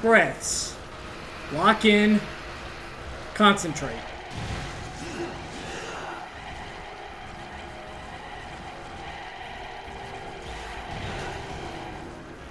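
A sword slashes and strikes with sharp hits.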